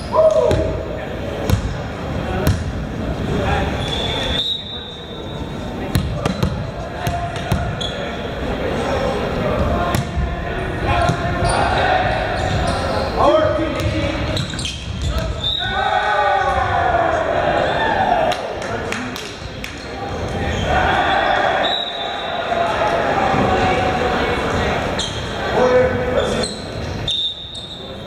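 Young men shout and call out in a large echoing gym.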